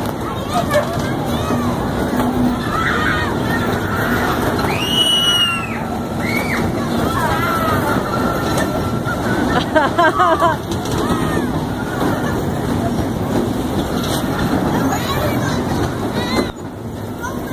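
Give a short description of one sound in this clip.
A spinning ride rumbles and whooshes steadily outdoors.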